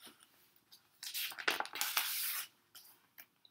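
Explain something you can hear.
A book's page rustles as it is turned.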